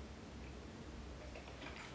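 A man sips a drink quietly.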